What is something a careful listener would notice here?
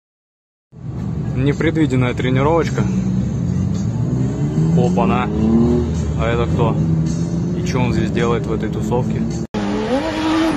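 Car engines rev up and down loudly close by.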